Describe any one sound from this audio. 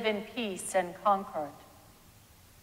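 A man chants briefly through a microphone in a large echoing hall.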